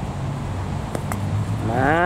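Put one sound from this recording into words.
A mallet taps a ball on grass.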